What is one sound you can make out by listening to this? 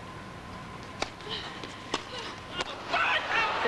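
A tennis ball is struck with sharp pops of a racket.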